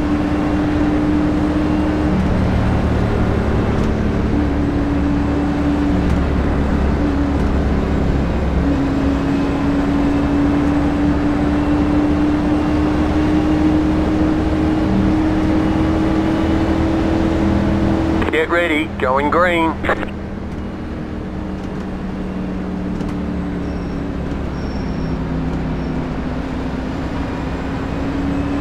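A race car engine drones steadily at speed.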